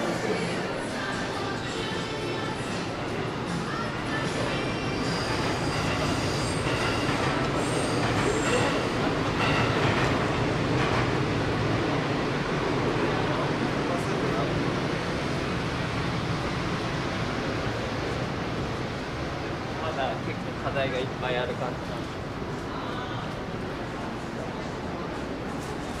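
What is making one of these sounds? Shoppers murmur and chat in a large indoor hall.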